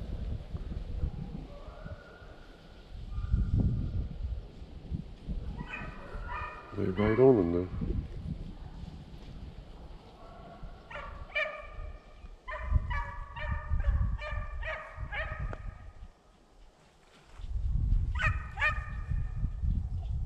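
Wind blows in gusts against the microphone outdoors.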